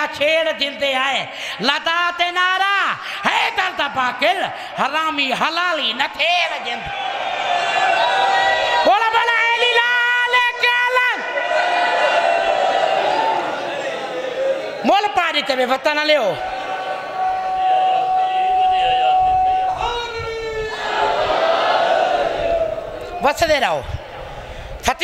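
A man speaks passionately into a microphone over loudspeakers, his voice rising to shouts.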